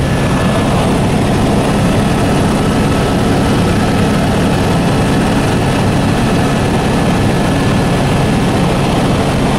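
A helicopter engine and rotor roar steadily from inside the cabin.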